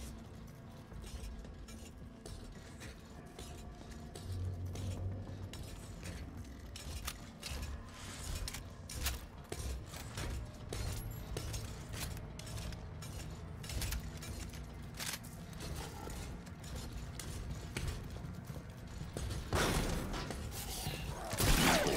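Footsteps tap on a hard metal floor.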